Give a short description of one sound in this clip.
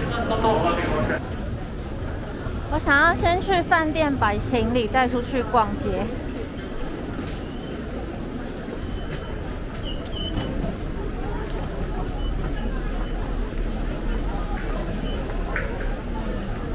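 A crowd bustles and murmurs in a large echoing hall.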